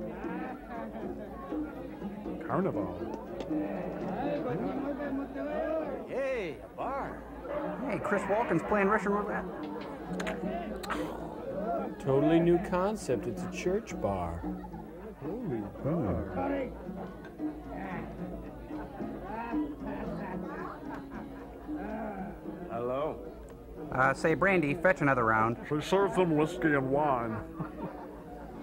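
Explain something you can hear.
Several men make joking remarks close by.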